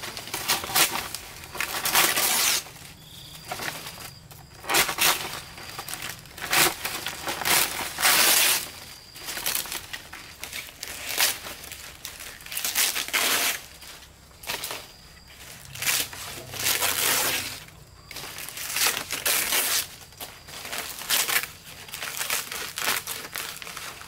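Dry palm fronds scrape against a thatched roof.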